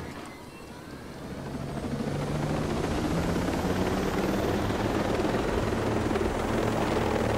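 A helicopter's engine whines and its rotor blades thump steadily as it lifts off and flies.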